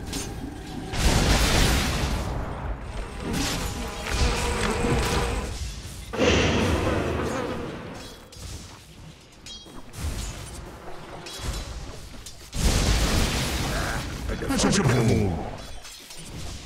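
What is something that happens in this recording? Magic spells burst and crackle in a loud fight.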